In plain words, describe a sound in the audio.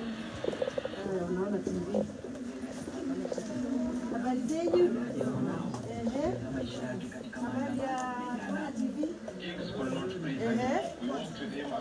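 A group of people talk and chatter in a room.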